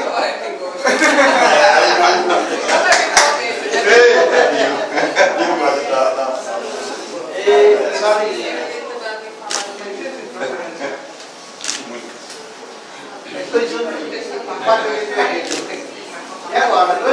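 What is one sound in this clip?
Several men and women chat at once in a lively indoor crowd.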